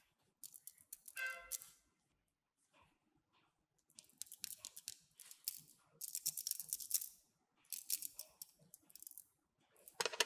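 Plastic beads click and rattle against each other.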